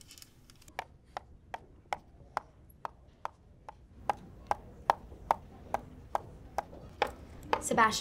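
A pen taps steadily on a notebook.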